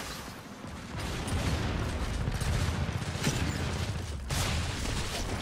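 Rapid gunfire rattles and booms.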